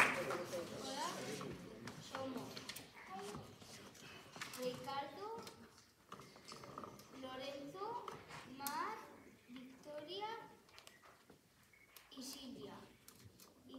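Children play short, wavering notes on saxophones in an echoing hall.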